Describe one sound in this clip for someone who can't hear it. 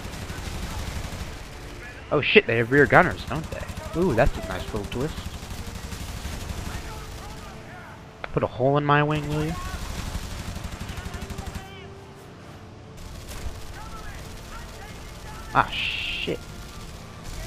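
A piston-engined fighter plane drones in flight.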